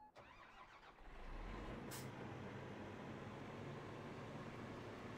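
A combine harvester engine rumbles steadily.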